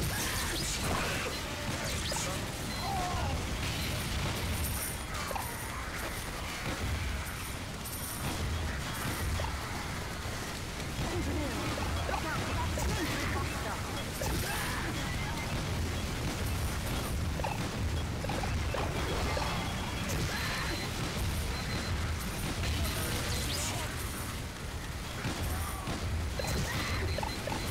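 Gunfire and explosions crackle and boom.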